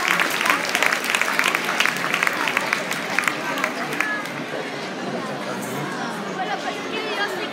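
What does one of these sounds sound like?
A crowd of voices murmurs and chatters in a big echoing hall.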